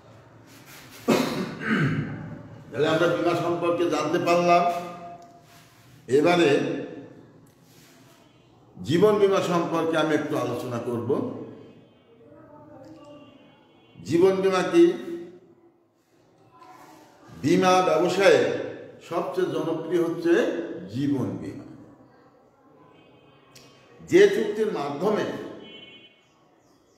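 An elderly man speaks clearly in bursts, close to a microphone, with short pauses.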